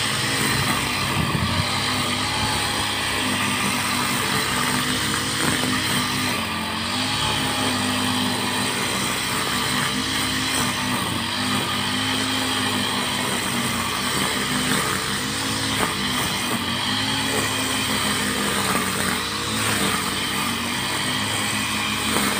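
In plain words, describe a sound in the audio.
A string trimmer engine drones loudly nearby, its pitch rising and falling as the grass is cut.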